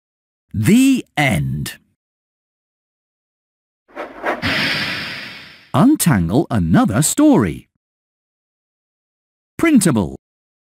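A man's voice speaks cheerfully.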